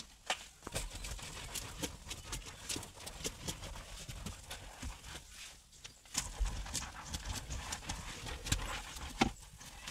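A wet sponge scrubs foamy fabric upholstery.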